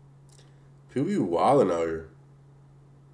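A young man exclaims briefly, close to a microphone.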